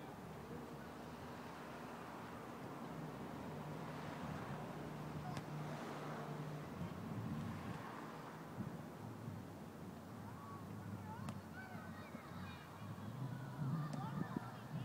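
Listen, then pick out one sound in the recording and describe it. Wind blows steadily across an open outdoor space.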